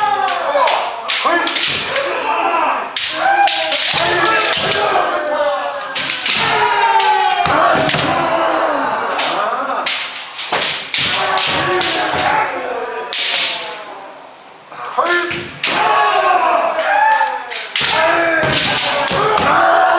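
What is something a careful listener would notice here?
Bamboo swords clack against each other in quick strikes.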